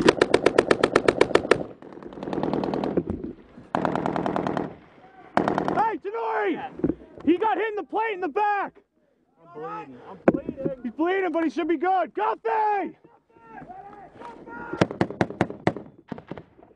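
Rapid gunfire bursts crack nearby.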